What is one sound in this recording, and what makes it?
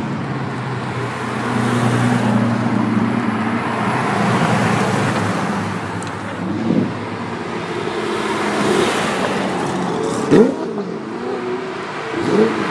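Sports car engines rumble and roar as the cars drive past.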